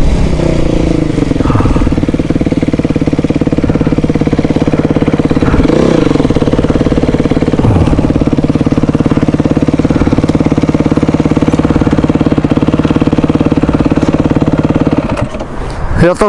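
A dirt bike engine idles with a steady throbbing putter, close by.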